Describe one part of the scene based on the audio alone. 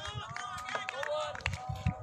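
A bat knocks a ball.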